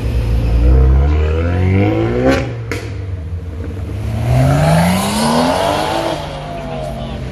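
A car engine revs up sharply as the car pulls away.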